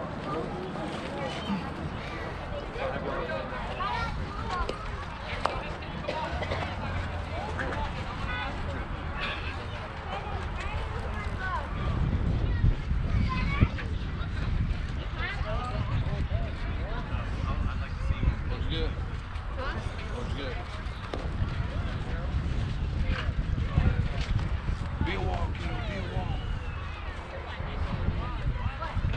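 Children call out and chatter across an open field.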